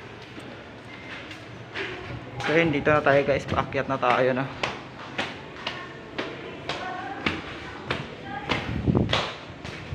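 Footsteps climb hard stairs.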